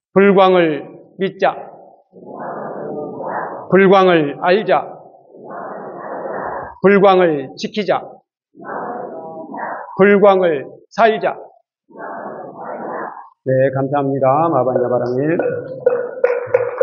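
An elderly man chants steadily into a microphone.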